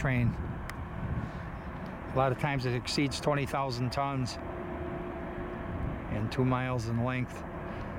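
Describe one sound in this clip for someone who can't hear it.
A freight train rumbles past in the distance.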